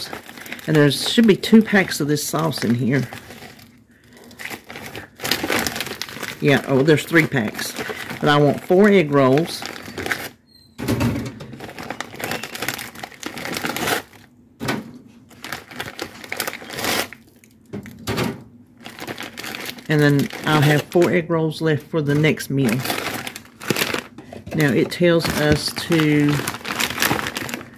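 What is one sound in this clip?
A plastic bag crinkles as it is handled up close.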